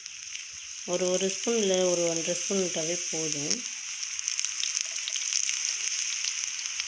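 Oil sizzles and crackles on a hot griddle.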